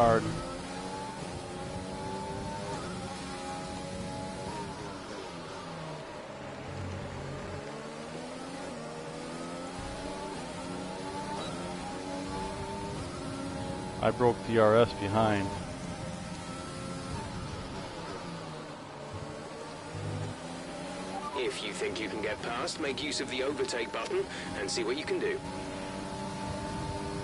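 A racing car engine screams at high revs, rising with each gear and dropping sharply under braking.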